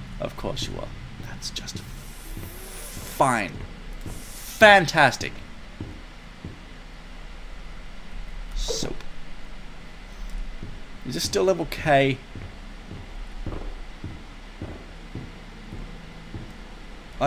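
Footsteps thud on wooden floors.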